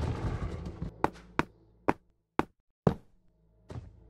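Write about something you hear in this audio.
Sharp popping sounds burst out one after another.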